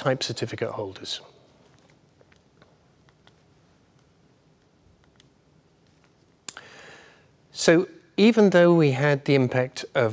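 A man speaks calmly into a microphone, presenting.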